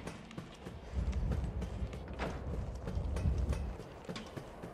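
Footsteps clang down metal stairs.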